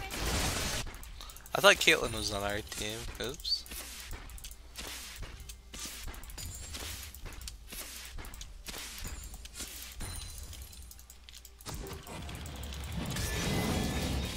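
Game fighting sounds clash and crackle with spell effects and hits.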